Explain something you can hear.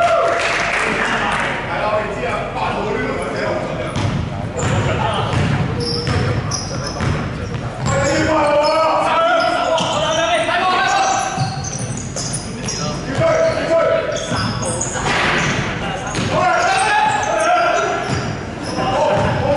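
Sneakers squeak on a court floor in a large echoing hall.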